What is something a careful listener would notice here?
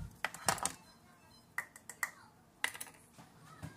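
Glass jars clink and knock against a counter.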